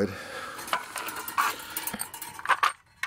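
Small metal parts clink together in a hand.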